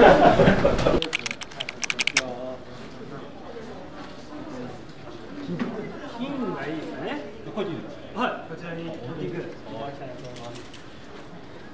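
A man talks quietly at a distance.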